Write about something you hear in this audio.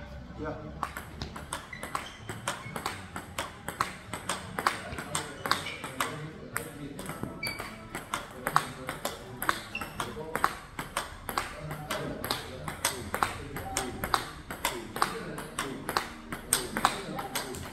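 A table tennis ball is struck with a paddle again and again in a quick rally.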